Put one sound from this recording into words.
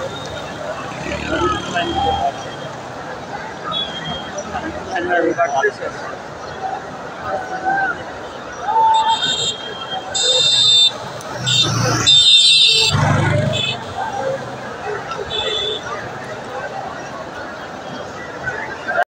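Men talk nearby in a crowd.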